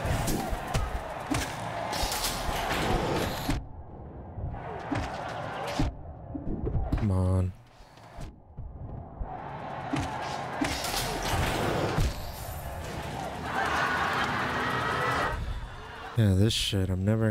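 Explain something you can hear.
Game sword slashes and hits crack sharply.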